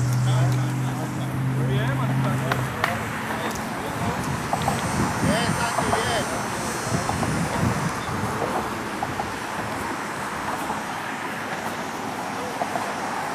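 Soccer balls thump as children kick them.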